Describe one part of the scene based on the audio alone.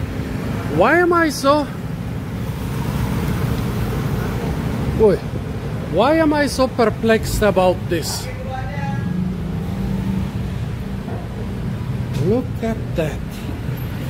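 An elderly man speaks loudly in short bursts nearby.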